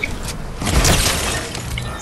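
A gun fires a single shot.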